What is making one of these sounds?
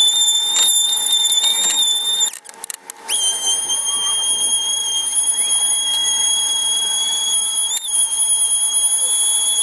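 An electric palm sander whines loudly, stops briefly and starts up again.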